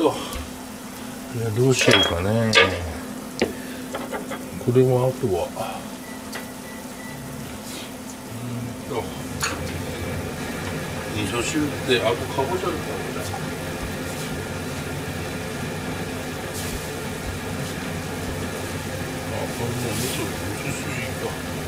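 Food sizzles and simmers steadily in pans.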